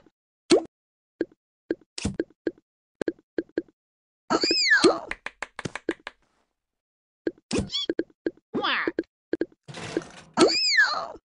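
Short menu clicks tick quickly.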